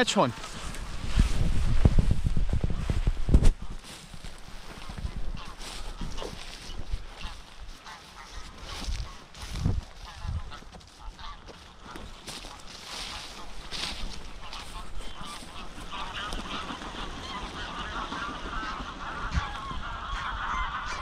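Wind buffets the microphone outdoors, gusting strongly at first and then easing.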